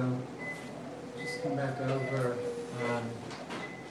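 A medical monitor beeps at a steady pace.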